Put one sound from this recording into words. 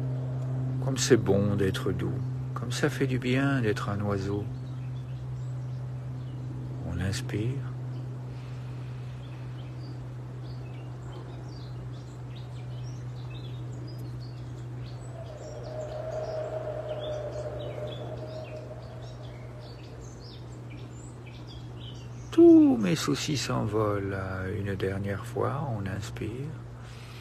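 A man speaks calmly and close by, with long pauses.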